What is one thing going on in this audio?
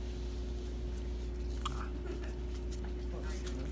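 Playing cards shuffle and slap softly between hands.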